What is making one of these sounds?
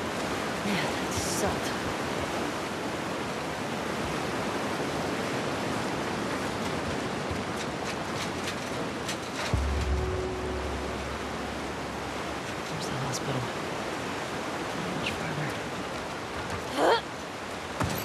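Steady rain falls and patters outdoors.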